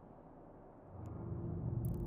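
A spaceship's engines rumble deeply.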